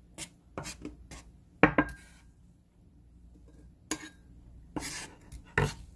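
A knife scrapes across a wooden board.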